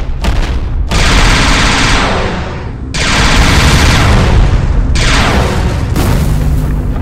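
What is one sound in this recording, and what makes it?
Explosions boom and roar loudly.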